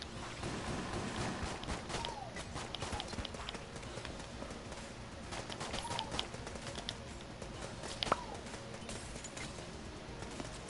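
Video game guns fire rapid shots.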